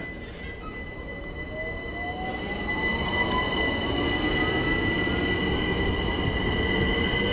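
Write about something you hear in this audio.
A train pulls away, its motors whining as they rise in pitch.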